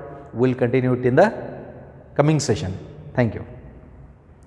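A man speaks with animation into a close microphone, in a room with some echo.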